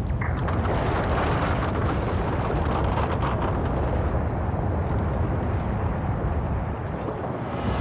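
A massive stone structure rumbles and grinds heavily.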